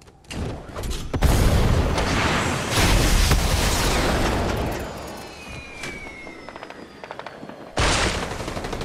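Air rushes loudly past during a fast flight through the air.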